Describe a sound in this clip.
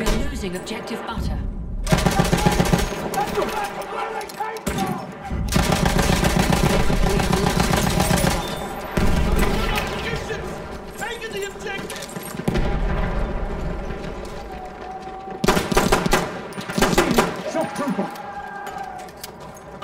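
Loud gunfire and explosions boom and crackle.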